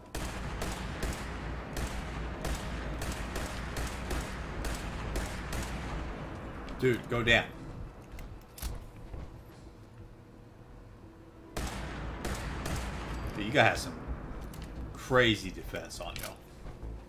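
A gun fires in rapid bursts of sharp shots.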